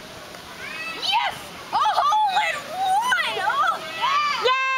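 A young woman shouts and cheers excitedly close by.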